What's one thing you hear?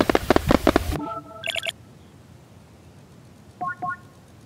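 A game menu beeps with short electronic tones.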